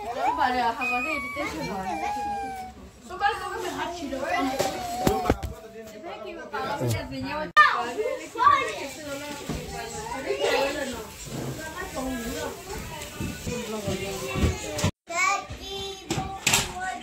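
Young children shout and chatter excitedly close by.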